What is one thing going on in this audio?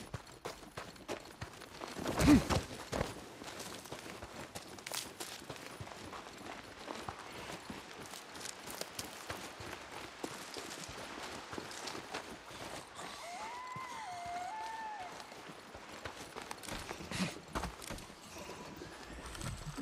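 Footsteps run quickly through dry grass.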